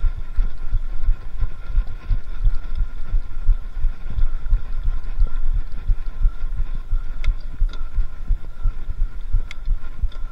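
Wind buffets a microphone in low, rumbling gusts.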